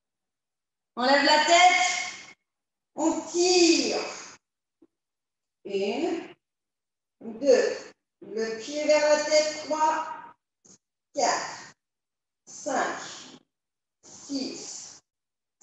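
A woman speaks calmly into a close microphone.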